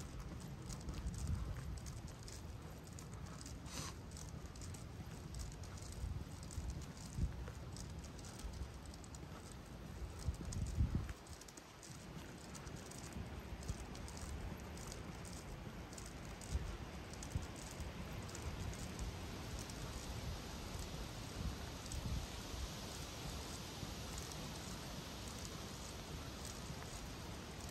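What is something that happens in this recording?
Footsteps scuff steadily along a paved path outdoors.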